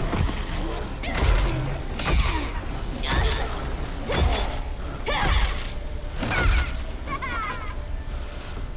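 A young woman laughs and taunts with animation.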